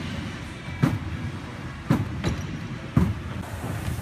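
Heavy thuds ring out in a large echoing hall.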